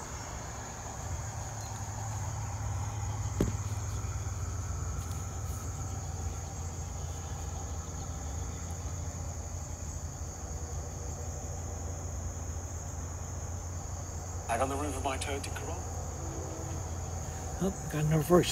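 A model train's electric motor hums steadily.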